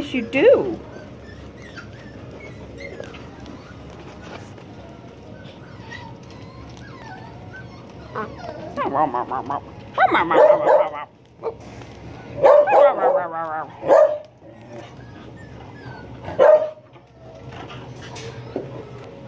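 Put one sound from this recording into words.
Puppies' claws scrabble on a hard floor.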